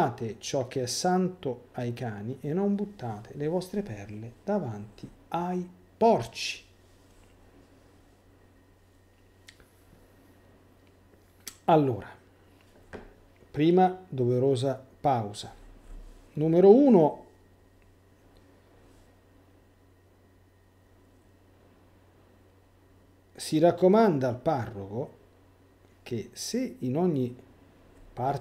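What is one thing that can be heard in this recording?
A middle-aged man talks calmly and thoughtfully into a close microphone, with pauses.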